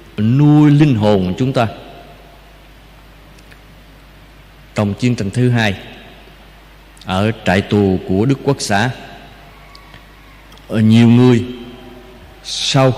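An elderly man speaks slowly and calmly into a microphone, heard through a loudspeaker in an echoing room, with long pauses.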